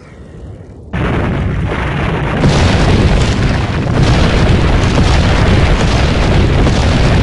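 A large boulder rolls and rumbles loudly.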